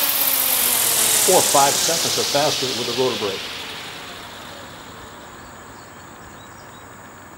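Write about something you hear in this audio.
A small helicopter's rotor whooshes as it spins down and fades.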